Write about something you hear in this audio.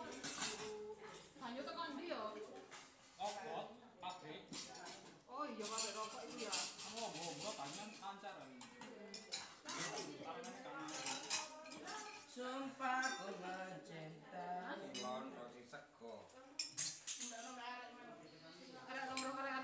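Spoons clink against plates and bowls.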